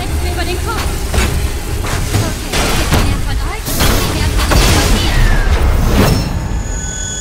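Explosions boom and roar loudly.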